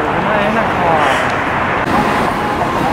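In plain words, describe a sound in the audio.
A young woman talks close by.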